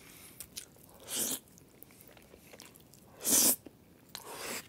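A young man slurps noodles loudly close by.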